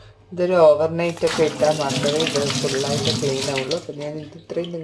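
Water runs from a tap into a metal sink.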